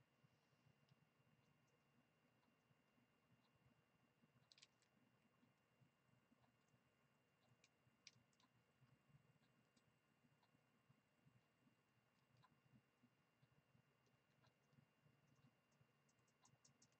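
A coloured pencil scratches softly across paper, up close.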